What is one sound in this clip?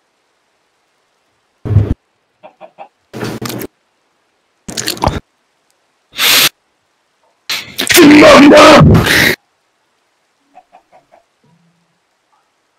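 A fire crackles and hisses.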